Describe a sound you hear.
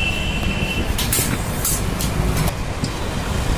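Metal strips clink and clatter as they are handled.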